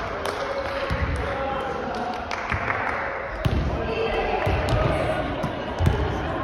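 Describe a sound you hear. Volleyballs thud against hands and bounce on a wooden floor in a large echoing hall.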